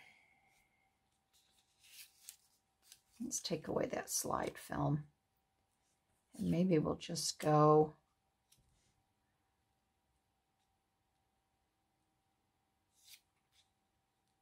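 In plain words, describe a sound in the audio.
Paper rustles and crinkles softly between hands.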